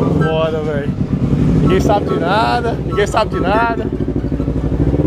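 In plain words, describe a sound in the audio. A motorcycle engine revs loudly and close by.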